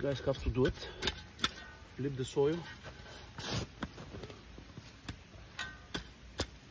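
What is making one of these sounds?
A metal shovel scrapes and digs into loose soil.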